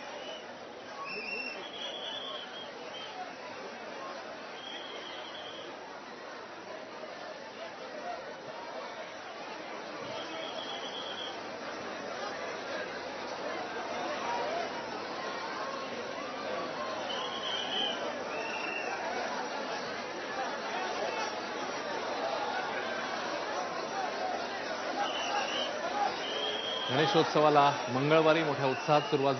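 A crowd of people chatters and murmurs close by.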